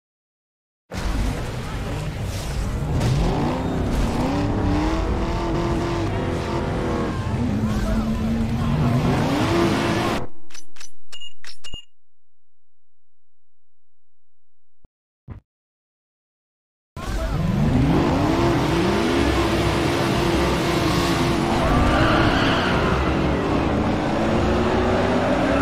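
Car engines rev loudly and roar.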